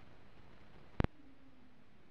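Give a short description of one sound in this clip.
A loud pop sounds once from the record's surface.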